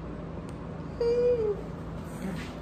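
A young man chuckles briefly.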